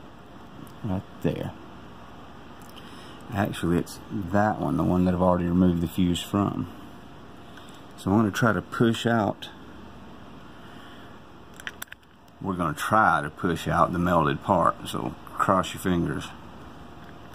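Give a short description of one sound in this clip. A man talks close by, calmly and with animation, in short bursts.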